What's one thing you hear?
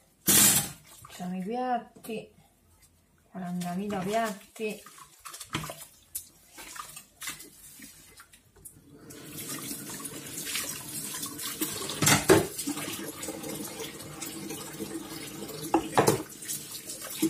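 Dishes clink and knock against a metal sink.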